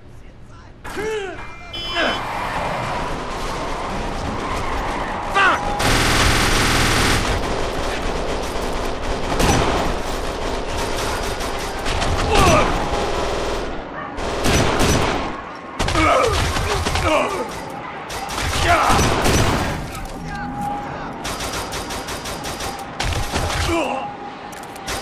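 Gunfire rings out in rapid bursts.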